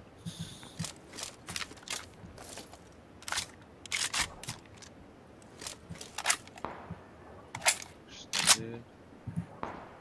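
Footsteps crunch on dry ground.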